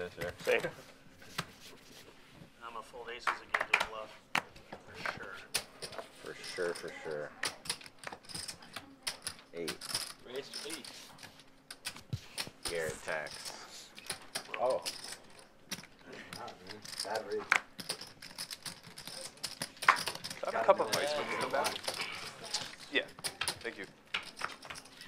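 Men talk with each other at a table, close by.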